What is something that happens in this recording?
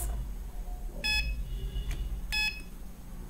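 An electronic buzzer beeps in short, high tones.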